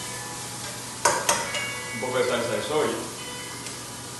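A spatula scrapes and taps in a pan.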